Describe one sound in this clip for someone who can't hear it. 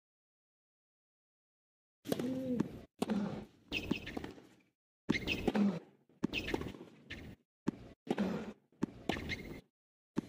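A tennis ball is struck sharply back and forth with rackets.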